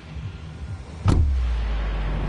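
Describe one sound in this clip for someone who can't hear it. A sudden whoosh sounds as a game figure jumps out.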